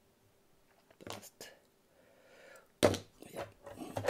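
Metal hand tools clink and knock against a work table.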